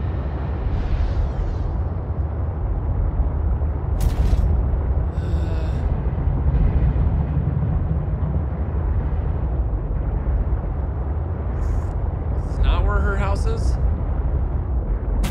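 A low underwater engine hum drones steadily.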